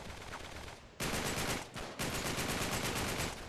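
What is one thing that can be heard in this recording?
A gun fires in rapid bursts, echoing off hard walls.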